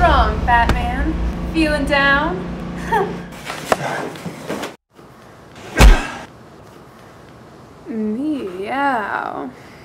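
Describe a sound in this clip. A young woman speaks playfully close by.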